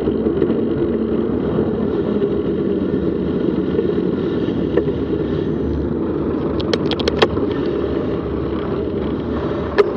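Cars and vans pass by on a road nearby.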